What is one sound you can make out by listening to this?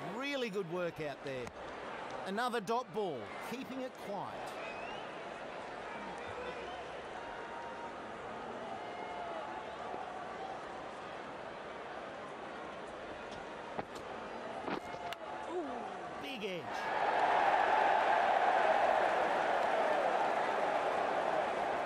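A large stadium crowd murmurs steadily, then swells into loud cheering.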